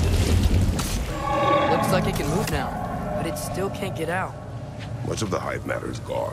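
A man speaks slowly in a deep, gruff voice.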